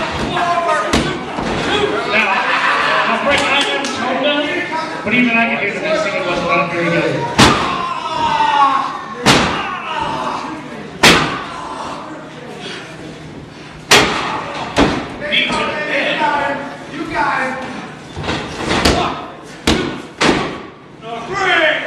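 Wrestlers' bodies slam loudly onto a ring mat.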